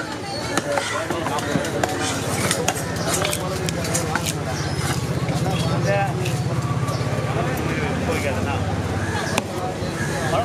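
A cleaver chops through fish on a wooden block with sharp thuds.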